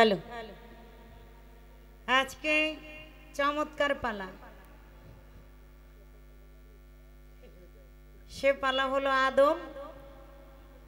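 A young woman sings into a microphone, her voice amplified over loudspeakers in long held phrases.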